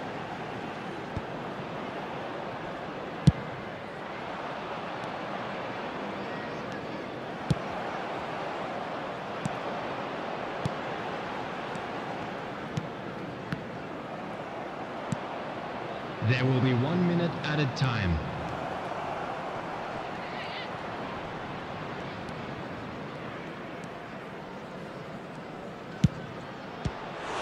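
A stadium crowd murmurs and roars steadily throughout.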